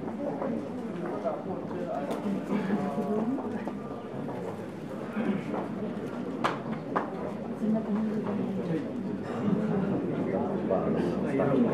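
A man speaks over loudspeakers in an echoing hall.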